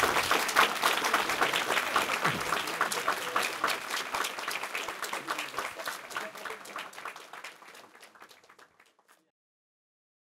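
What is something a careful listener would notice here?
An audience applauds, and the clapping slowly fades away.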